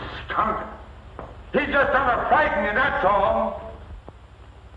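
A man speaks loudly and urgently.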